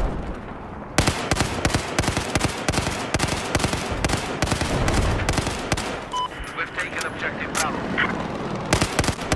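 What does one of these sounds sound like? An automatic rifle fires rapid bursts of shots close by.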